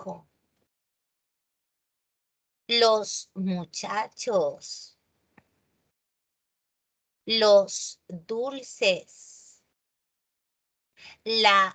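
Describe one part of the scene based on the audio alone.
A woman explains calmly, heard through an online call.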